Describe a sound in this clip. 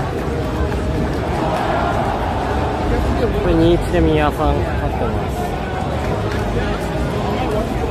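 A crowd chatters loudly all around in a busy hall.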